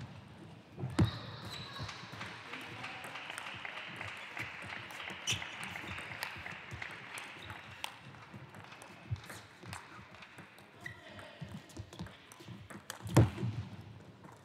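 A table tennis ball clicks back and forth off paddles and the table in a quick rally.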